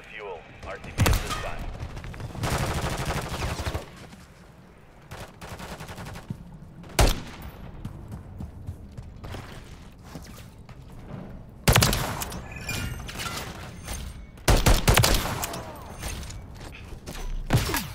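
Gunshots ring out in sharp, loud bursts.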